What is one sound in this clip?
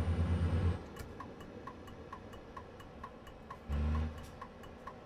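A turn signal ticks rapidly.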